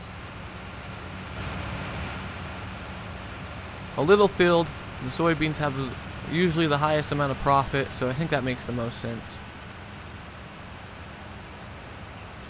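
A tractor engine hums as the tractor drives off.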